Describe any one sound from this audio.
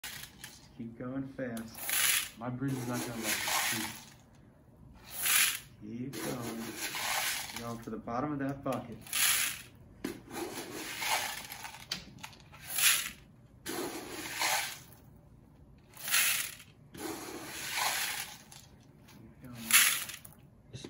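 Water pours and splashes into a plastic bucket.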